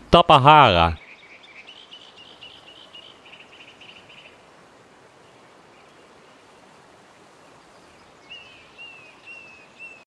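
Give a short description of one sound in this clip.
Small waves lap gently at a sandy shore.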